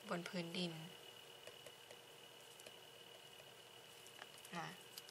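A felt pen squeaks and scratches softly on paper.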